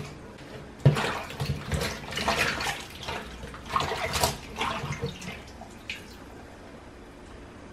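Pieces of vegetable splash softly in a bowl of water.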